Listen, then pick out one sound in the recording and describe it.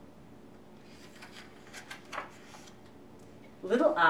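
A book page turns with a soft rustle.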